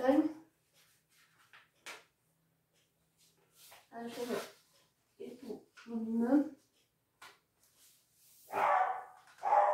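A girl talks close by, in short bursts.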